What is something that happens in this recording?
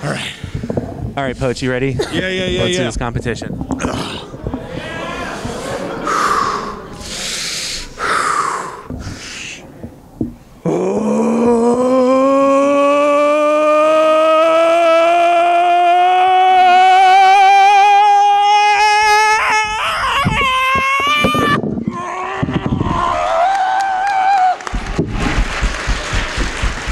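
A man talks into a microphone with animation in a large, echoing room.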